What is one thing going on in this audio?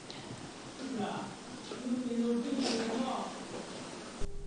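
A woman talks quietly.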